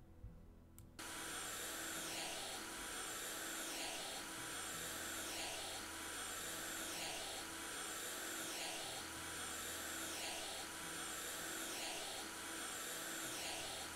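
A spray cleaner hisses steadily in repeated strokes.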